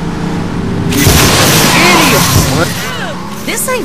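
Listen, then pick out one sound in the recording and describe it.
A car crashes into other vehicles with a loud bang.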